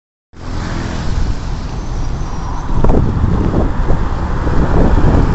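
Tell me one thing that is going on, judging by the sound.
Tyres roll steadily on a city road.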